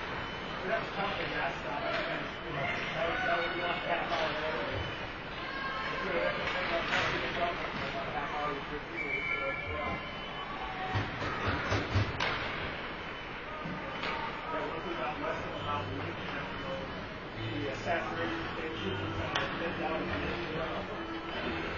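Hockey sticks tap and clack on the ice.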